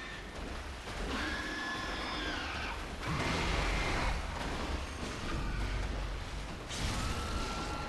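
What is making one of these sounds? A large beast snarls and roars.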